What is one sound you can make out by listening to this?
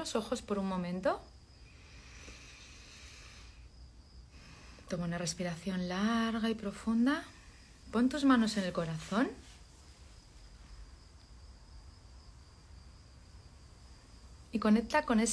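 A woman speaks softly and slowly close to a microphone, with long pauses.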